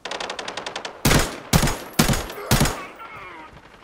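Loud gunshots boom close by.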